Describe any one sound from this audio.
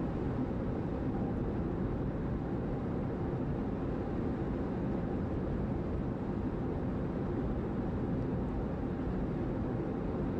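A car's engine hums steadily from inside the cabin.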